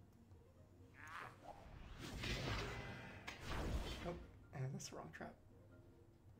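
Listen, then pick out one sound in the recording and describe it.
A magic spell bursts with a whooshing shimmer.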